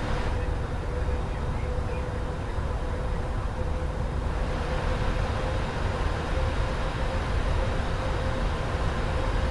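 Jet engines roar steadily from inside a cockpit.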